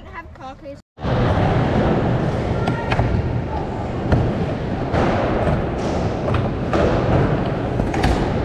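Skateboard wheels rumble as they roll across a wooden ramp.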